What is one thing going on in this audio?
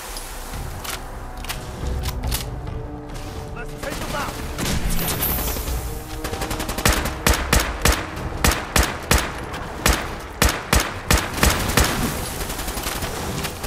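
A rifle is reloaded with metallic clicks.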